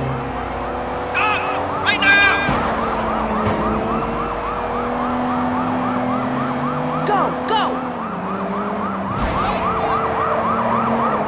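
A police siren wails close by.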